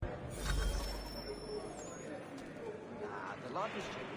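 A crowd of men murmurs and jeers in an echoing hall.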